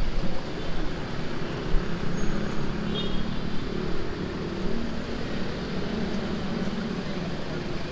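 A car engine hums as it drives slowly past close by.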